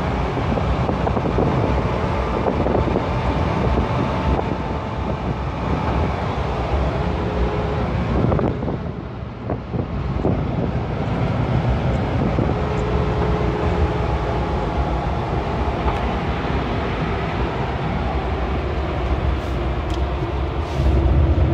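Tyres rumble on a paved road.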